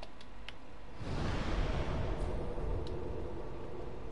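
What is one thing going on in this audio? A blast of fire roars and rumbles.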